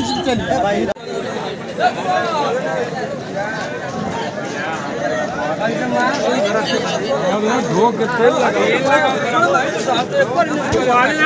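A crowd of people chatter in the open air.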